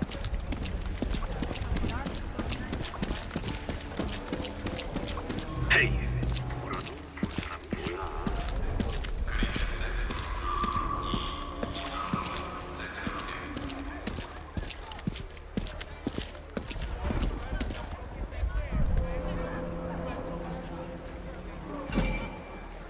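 Footsteps splash on wet ground.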